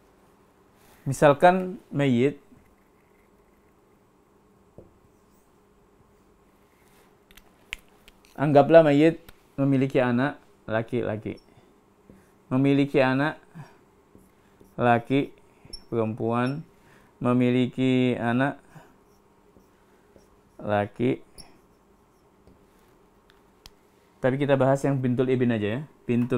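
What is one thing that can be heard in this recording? A man speaks calmly and steadily, close by, in pauses.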